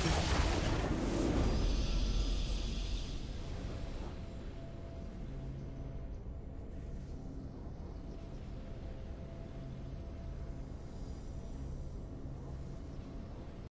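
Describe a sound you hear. A triumphant game fanfare swells and then settles into calm music.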